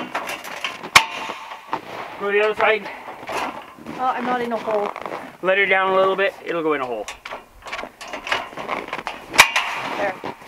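A metal scaffold clanks as it is handled.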